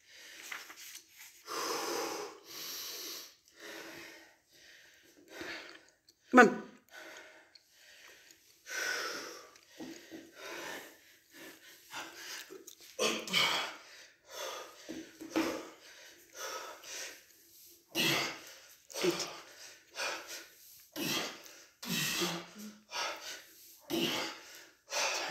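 A middle-aged man breathes hard between efforts.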